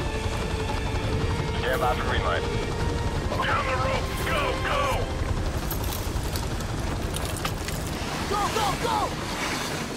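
A helicopter's rotor thumps and roars steadily close by.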